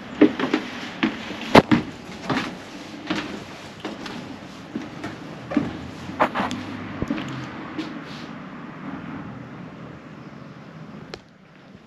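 Footsteps creak on old wooden floorboards.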